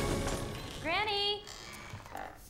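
A young girl calls out loudly in a high voice.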